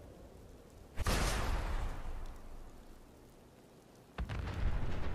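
A heavy weapon fires with a loud, rushing boom.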